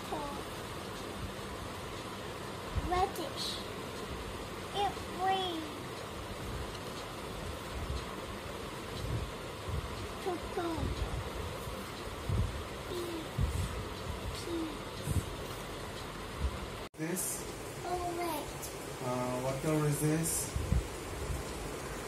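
A young child speaks in short words, close by.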